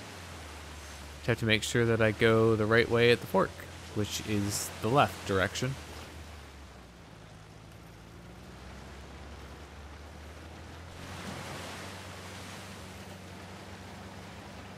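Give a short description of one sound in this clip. Water splashes under tyres driving through a shallow stream.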